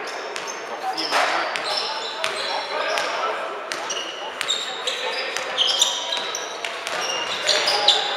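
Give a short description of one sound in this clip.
Basketball sneakers squeak on a gym floor in a large echoing hall.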